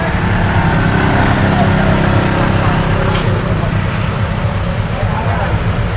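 Motorcycle engines rumble and putter close by.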